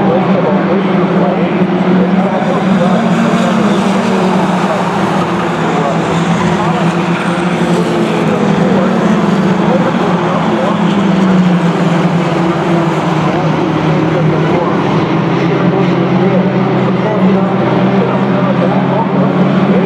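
Several stock race cars roar around an oval track at speed.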